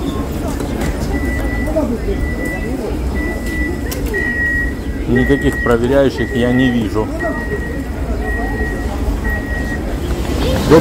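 Train doors beep repeatedly in short, steady tones.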